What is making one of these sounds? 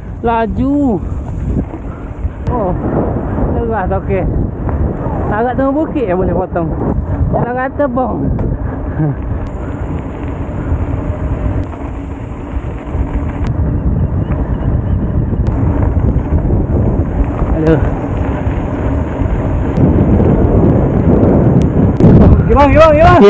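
Bicycle tyres crunch and rattle over a rough dirt track.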